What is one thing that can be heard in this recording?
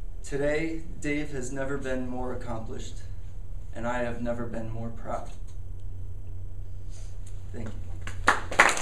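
A young man speaks calmly to a room.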